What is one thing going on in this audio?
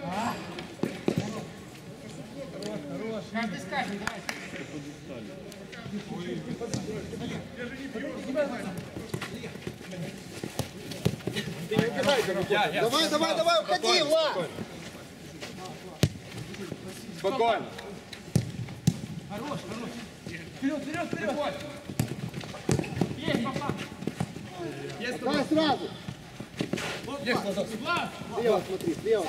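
A football thuds as it is kicked.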